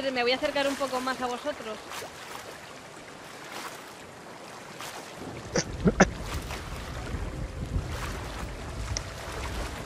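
Ocean waves wash and slosh around.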